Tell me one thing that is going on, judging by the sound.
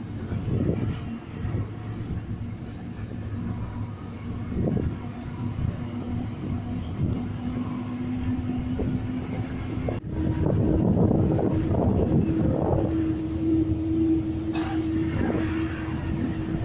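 Wind rushes past an open window.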